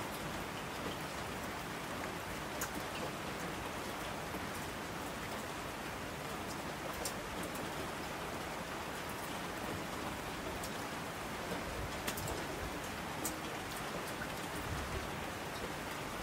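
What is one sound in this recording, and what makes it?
A rushing stream roars down a slope.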